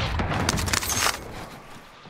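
A rifle clicks and clatters as it is reloaded.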